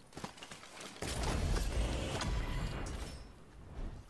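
A supply crate bursts open with a loud rushing whoosh.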